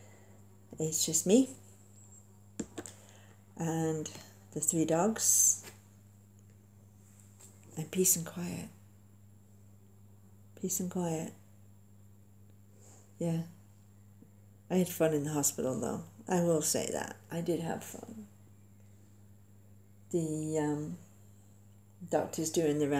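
A middle-aged woman speaks calmly and close, in short bursts with pauses.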